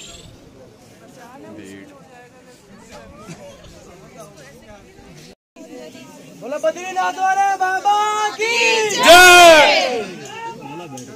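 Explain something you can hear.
A crowd of people murmur and chatter nearby, outdoors.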